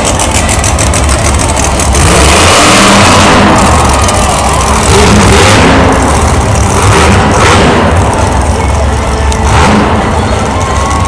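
A monster truck engine roars loudly in a large echoing arena.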